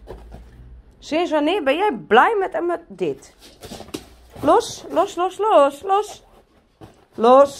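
A dog whines and yelps in high, wavering cries.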